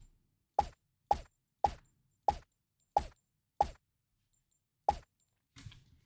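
A silenced pistol fires sharp shots in a quick, uneven series.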